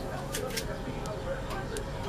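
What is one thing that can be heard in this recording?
Metal cage wire rattles and clicks under a hand.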